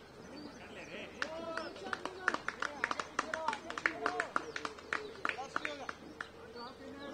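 Players on a field clap their hands.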